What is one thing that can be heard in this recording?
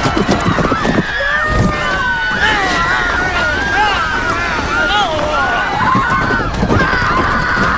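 A woman wails and screams in anguish nearby.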